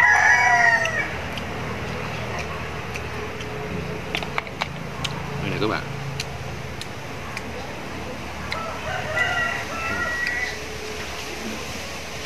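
Snail shells click and tap against each other.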